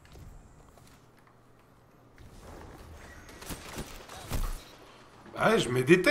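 A sniper rifle fires a loud shot in a video game.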